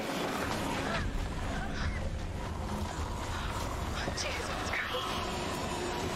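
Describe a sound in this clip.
A young woman cries out in fright.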